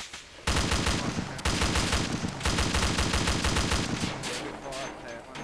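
A machine gun fires rapid bursts close by, with echoes ringing out afterwards.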